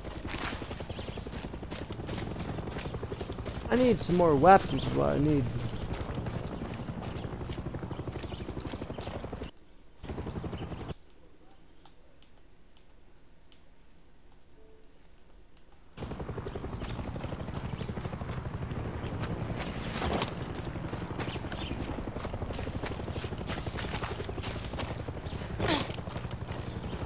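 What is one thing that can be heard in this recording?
Footsteps crunch over dirt and grass.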